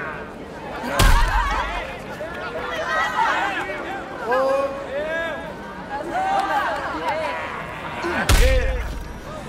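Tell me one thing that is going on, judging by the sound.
A pistol fires loud, booming shots.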